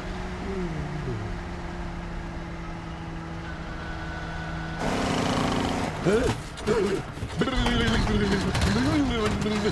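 A large truck engine hums steadily.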